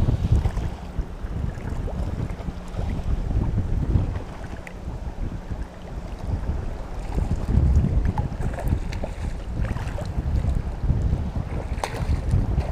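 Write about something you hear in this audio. Choppy shallow water sloshes and laps close by.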